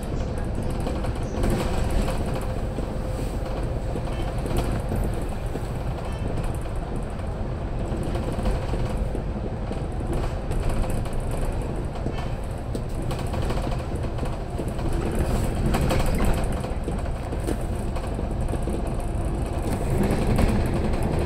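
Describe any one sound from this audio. A bus engine rumbles steadily as the bus drives along a road.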